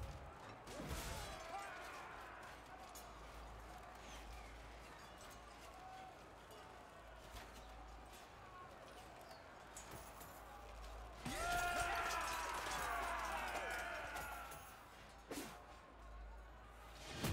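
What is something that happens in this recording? Game battle sounds clash and ring.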